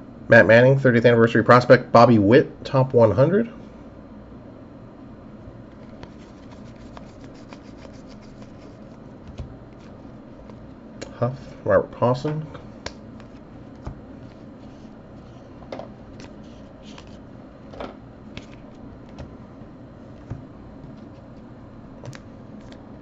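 Stiff trading cards slide and flick softly against each other as hands sort through a stack.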